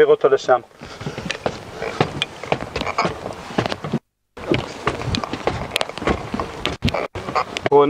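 Footsteps thud on steps as a group climbs.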